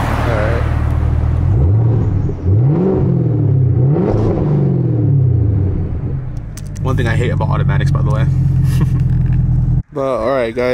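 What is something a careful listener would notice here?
A car engine hums steadily up close.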